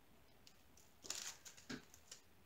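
Beads click softly as a finger stirs them in a tray.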